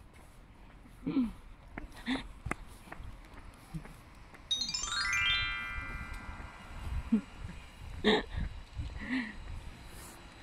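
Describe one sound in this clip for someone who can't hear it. A dog barks a few times nearby.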